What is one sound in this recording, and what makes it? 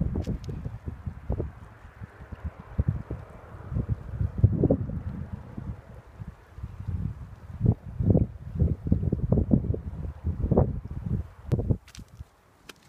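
A river flows and ripples over stones.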